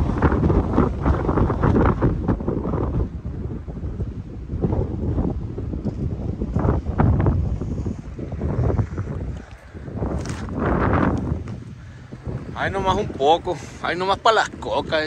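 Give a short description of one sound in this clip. Wind blusters loudly across the microphone outdoors.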